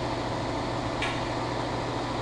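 Small metal bolts clink against a metal tray.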